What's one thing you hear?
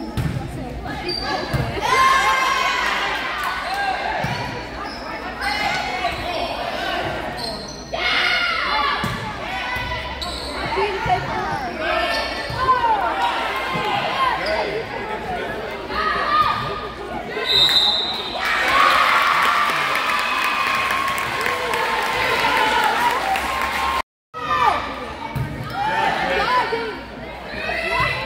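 Girls shout and cheer in a large echoing gym.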